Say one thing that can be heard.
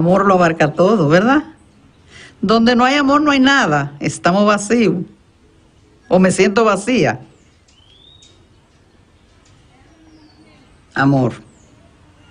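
An elderly woman speaks warmly and close up.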